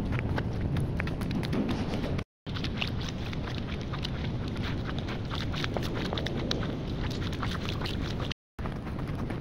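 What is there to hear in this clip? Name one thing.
Shoes tap on a hard floor.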